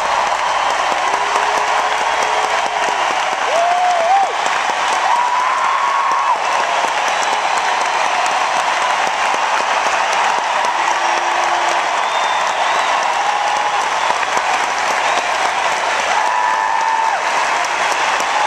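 People in a crowd whistle loudly.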